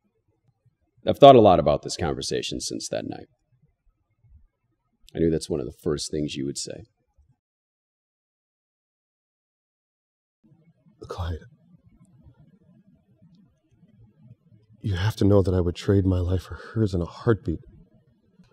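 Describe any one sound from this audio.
A man speaks quietly and slowly, close by.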